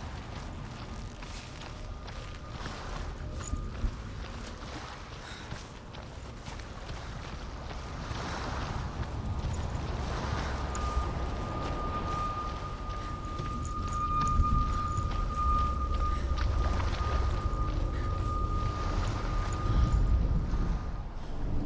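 Footsteps run over wet, gravelly ground.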